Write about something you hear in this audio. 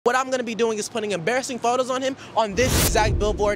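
A young man speaks energetically into a microphone.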